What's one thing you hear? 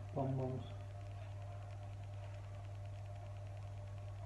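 Small pieces are set down softly on a ceramic plate.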